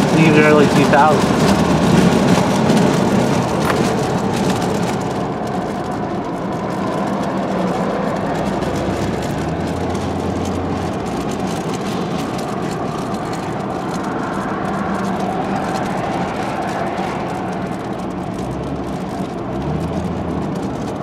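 Road noise and engine hum fill the inside of a moving car on a highway.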